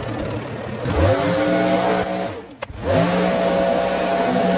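A leaf blower engine starts up and revs.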